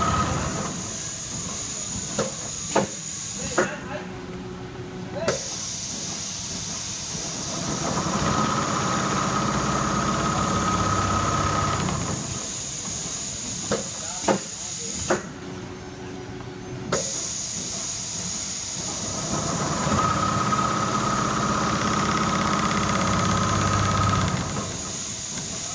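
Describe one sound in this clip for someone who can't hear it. Machine needles tap rapidly as the embroidery frames move.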